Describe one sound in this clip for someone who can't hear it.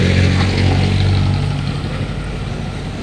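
A vehicle engine rumbles close by and fades.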